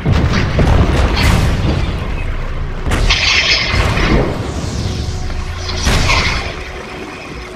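A magical burst crackles and whooshes loudly.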